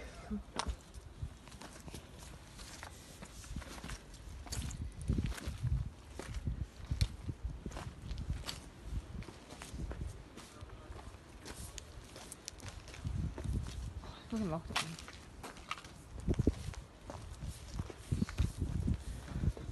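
Footsteps crunch on loose rubble and broken bricks.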